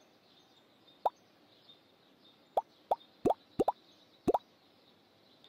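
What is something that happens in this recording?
Short falling electronic blips sound as menu buttons are tapped.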